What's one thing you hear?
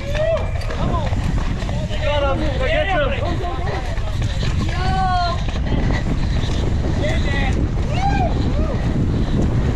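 Spectators shout and cheer loudly close by.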